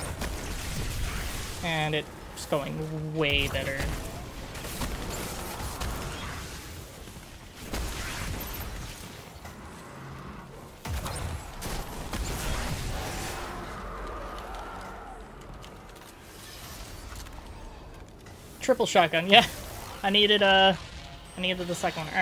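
Gunfire and explosions crackle from a video game.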